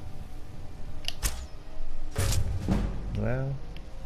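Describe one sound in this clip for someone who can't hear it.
A bowstring twangs as an arrow is loosed.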